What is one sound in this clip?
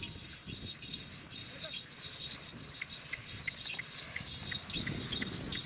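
Hooves and footsteps crunch on gravel.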